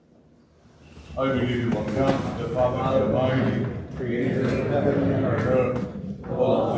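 A man speaks steadily and clearly through a microphone in a room with some echo.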